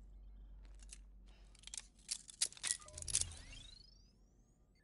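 A wrist device clicks and snaps into place.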